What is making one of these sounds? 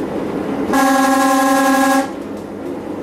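A train horn sounds one long blast.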